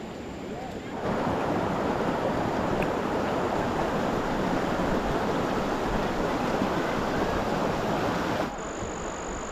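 A shallow stream rushes steadily over rocks.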